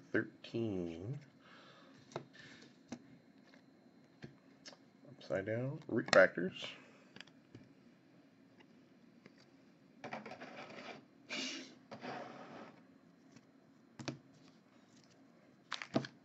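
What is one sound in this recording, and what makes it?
Trading cards slide and flick against each other in hands.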